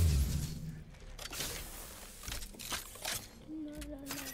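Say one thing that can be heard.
Metal gear rattles and clanks as a weapon is swapped.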